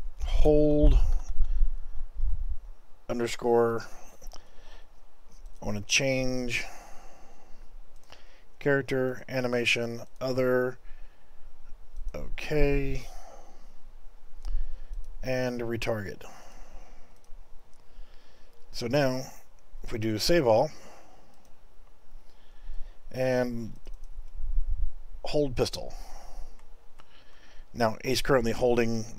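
A man talks calmly and closely into a microphone, with pauses.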